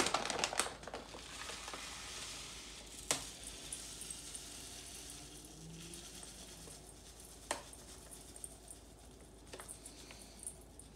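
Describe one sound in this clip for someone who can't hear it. Dry flakes pour from a bag into a metal bowl with a soft patter.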